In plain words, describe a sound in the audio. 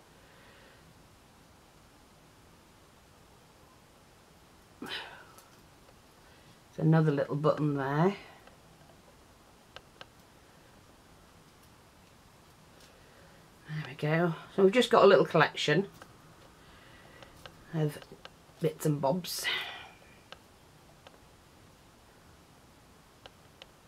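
Small metal charms clink softly against each other.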